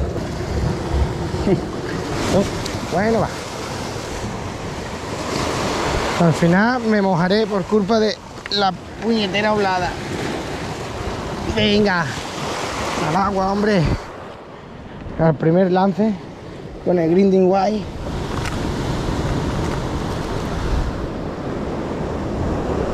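Waves crash and churn against rocks.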